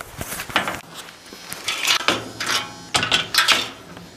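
Fabric rustles close by as it is handled.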